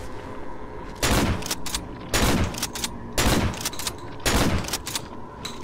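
A shotgun fires several loud blasts that echo down a street.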